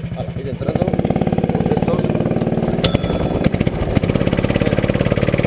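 A go-kart engine idles close by with a rapid, throbbing putter.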